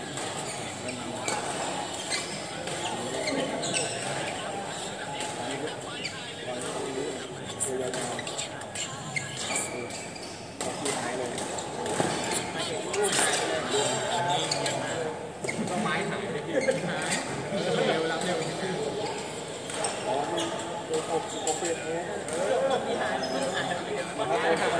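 A murmur of many players' voices fills the hall.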